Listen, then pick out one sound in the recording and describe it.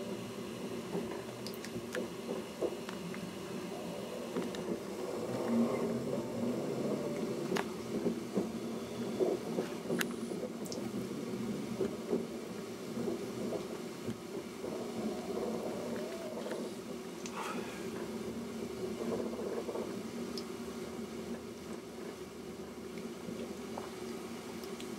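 A vehicle rumbles steadily as it moves along.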